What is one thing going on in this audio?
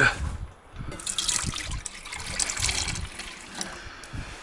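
Liquid pours into a pot.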